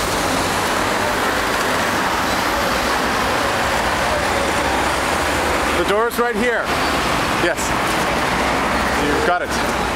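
Traffic hums and rushes by steadily on a busy street.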